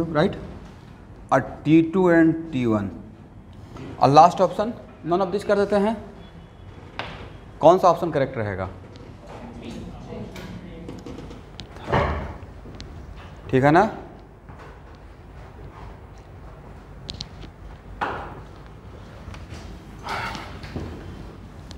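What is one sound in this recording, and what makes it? A man talks in an echoing room, lecturing with animation.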